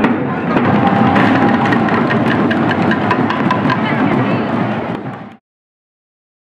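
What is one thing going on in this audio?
A group of drummers beats drums loudly in a lively rhythm outdoors.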